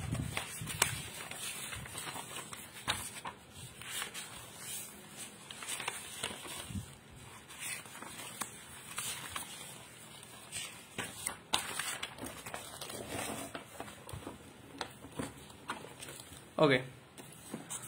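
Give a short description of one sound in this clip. Notebook pages rustle and flip as they are turned.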